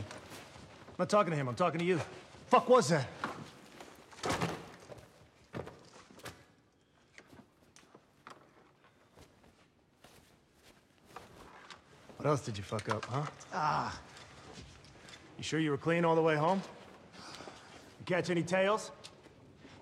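A man speaks tensely, close by.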